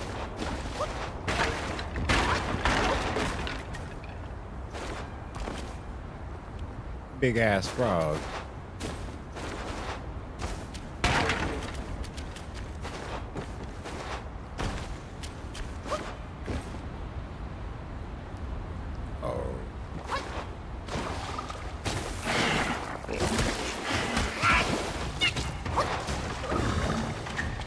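A young man talks with animation into a close microphone.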